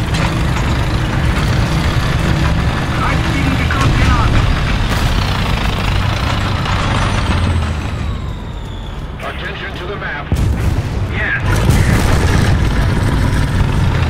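A tank's diesel engine rumbles as the tank drives.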